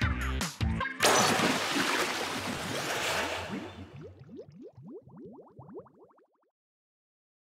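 A wet splatting sound bursts loudly and fades with bubbly squelches.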